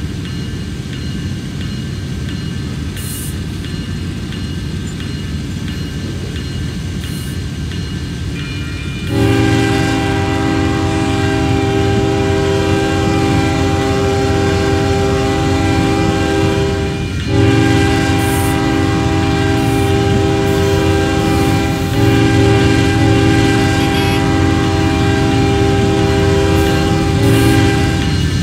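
A diesel locomotive rumbles steadily as it draws closer.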